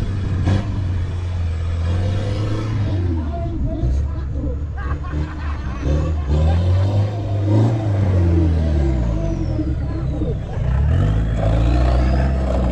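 A truck engine rumbles and revs as it climbs a dirt track.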